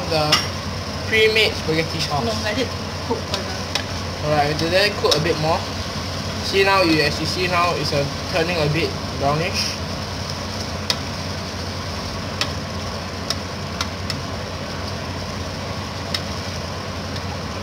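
Ground meat sizzles in a hot pan.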